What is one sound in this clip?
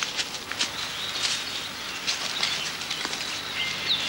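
A deer's antlers thrash and rustle through leafy plants.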